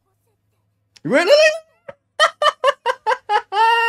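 A young man laughs loudly and heartily close to a microphone.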